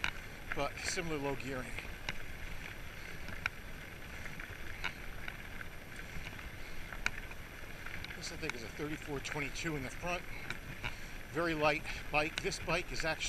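Bicycle tyres crunch steadily over a gravel path.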